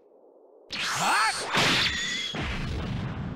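A heavy punch lands with a sharp whoosh and crack.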